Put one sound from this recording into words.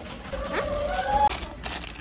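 A plastic wrapper crinkles.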